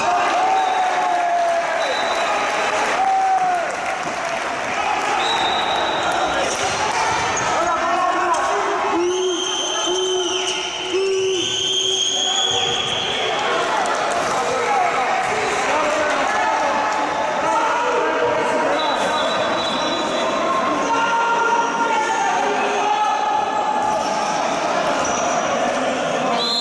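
A crowd of spectators shouts and cheers in an echoing indoor hall.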